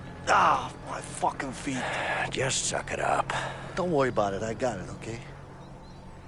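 A second man speaks urgently.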